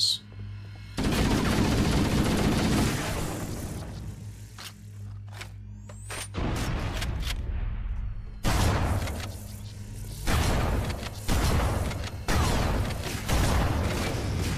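Rapid gunfire and blasts ring out in bursts.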